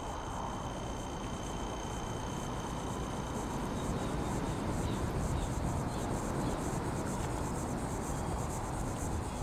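Footsteps run quickly on a hard path.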